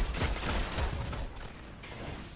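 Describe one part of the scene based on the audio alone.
Gunshots from a sniper rifle crack and boom in a video game.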